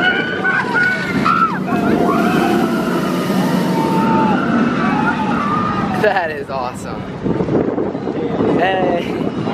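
Riders on a roller coaster scream and shriek with excitement.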